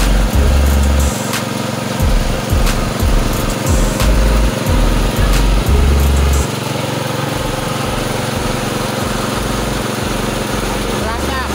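A small engine runs with a steady, loud drone close by.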